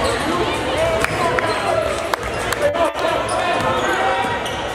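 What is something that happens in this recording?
A basketball bounces on the floor in a large echoing gym.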